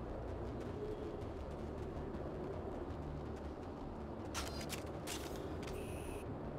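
Heavy boots crunch on rocky ground.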